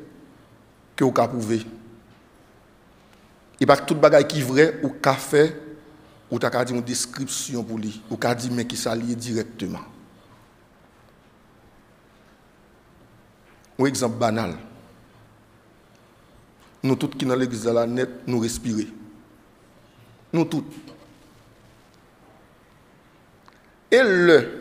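A man preaches with animation into a microphone, in bursts with long pauses, in a slightly echoing hall.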